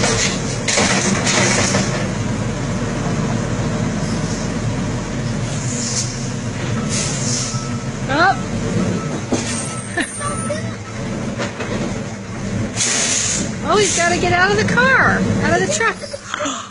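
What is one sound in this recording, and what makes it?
A garbage truck engine rumbles loudly nearby.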